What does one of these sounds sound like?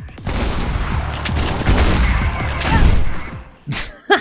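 A shotgun fires loudly in rapid blasts.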